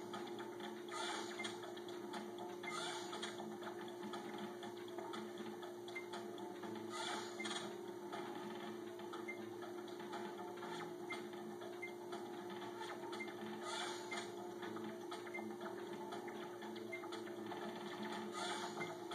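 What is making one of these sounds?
Electronic chimes and bursts from a video game sound when rows clear.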